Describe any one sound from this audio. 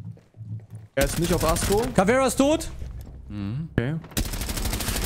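Rapid gunshots crack in a video game.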